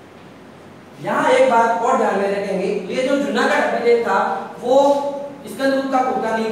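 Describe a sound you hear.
A man speaks clearly and calmly nearby.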